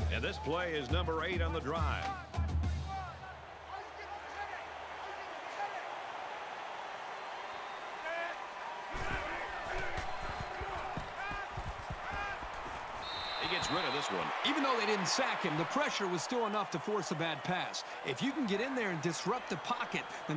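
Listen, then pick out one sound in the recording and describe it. A large stadium crowd roars and cheers.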